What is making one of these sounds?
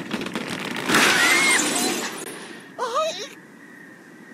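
A cartoon bird squawks as it flies through the air.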